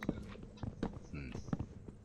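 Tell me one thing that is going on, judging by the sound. Wooden blocks crack and break apart.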